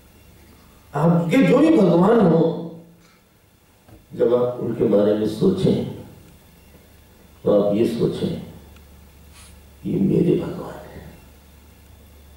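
A man speaks calmly through a microphone in short phrases, with pauses between them.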